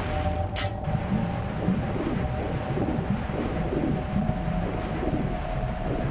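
Water gurgles and bubbles underwater.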